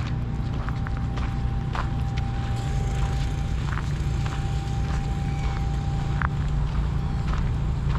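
Wind rumbles steadily in the open air.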